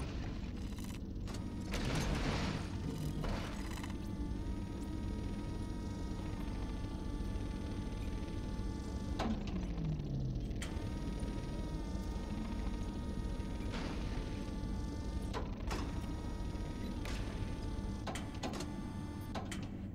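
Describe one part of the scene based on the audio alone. A small hovering machine hums steadily with a low drone.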